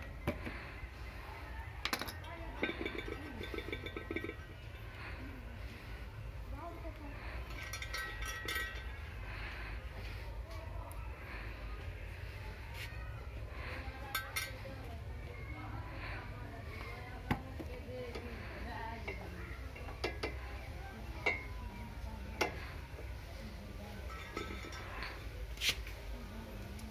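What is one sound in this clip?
Small metal parts click and scrape by hand.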